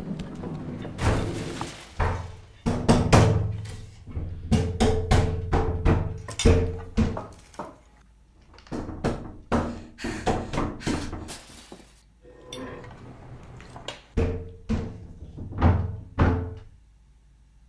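A woman pounds on a door with her fists.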